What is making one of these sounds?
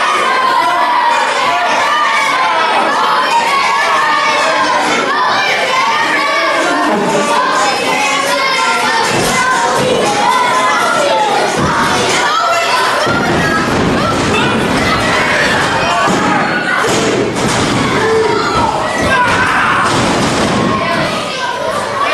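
A crowd cheers and chants loudly in an echoing hall.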